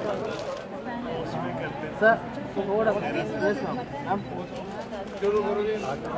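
Men and women chatter nearby.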